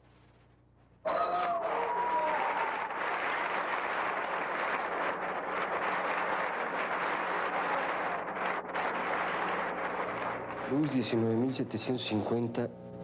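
A large crowd cheers and screams loudly in a big hall.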